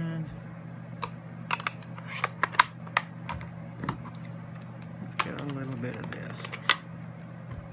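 A plastic stamping tool clicks and taps as it is handled.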